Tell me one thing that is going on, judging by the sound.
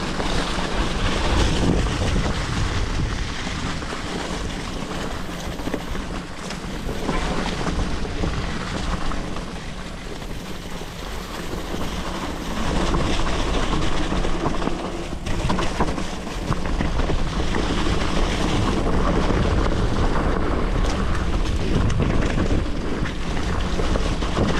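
Bicycle tyres roll and crunch over dry leaves on a dirt trail.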